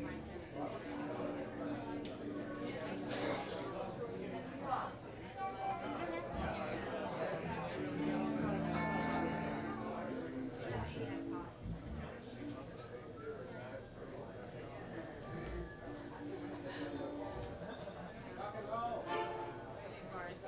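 Electric guitars play through amplifiers.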